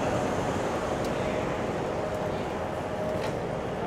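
Wheels of a rolling bag rattle on pavement.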